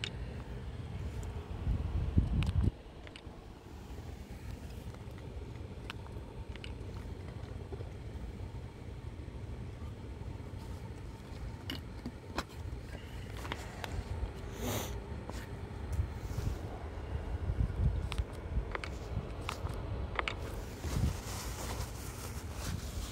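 Soft bumps and rustles of handling sound close by.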